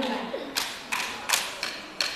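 A young girl speaks into a microphone.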